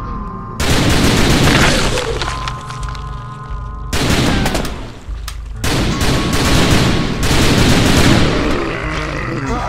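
Heavy blows land with loud, wet thuds and crashes.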